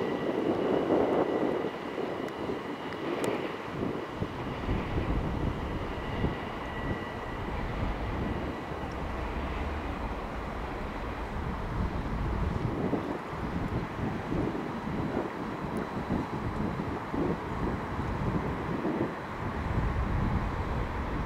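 A train rolls along the tracks in the distance.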